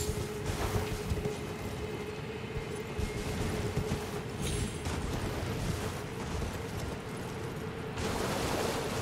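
A horse's hooves clatter on rock at a gallop.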